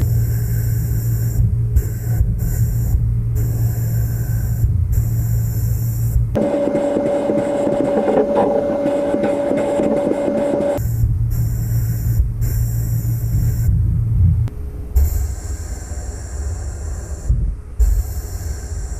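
A sandblasting gun hisses steadily as abrasive blasts against a hard surface.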